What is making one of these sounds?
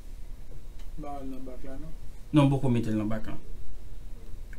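A man speaks calmly into a nearby microphone.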